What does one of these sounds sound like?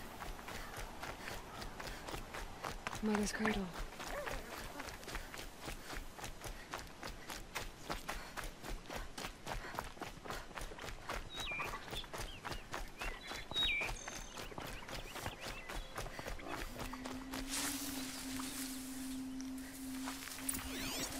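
Quick footsteps run over dirt and grass.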